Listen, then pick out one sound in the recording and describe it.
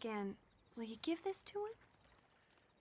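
A young woman speaks softly and pleadingly nearby.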